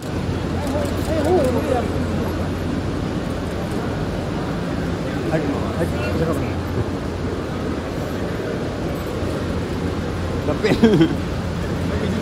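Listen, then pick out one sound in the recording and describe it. Men call out loudly nearby.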